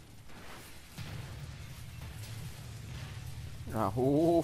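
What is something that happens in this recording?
A deep explosion booms and rumbles.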